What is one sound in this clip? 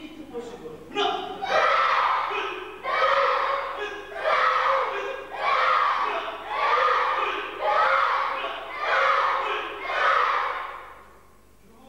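Children shout counts together in an echoing hall, in a steady rhythm.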